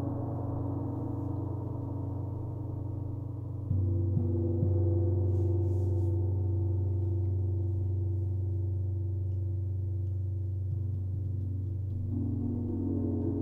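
Large gongs hum and shimmer with a deep, steady resonance.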